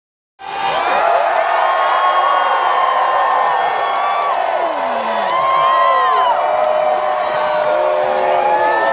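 A large crowd cheers and whistles outdoors.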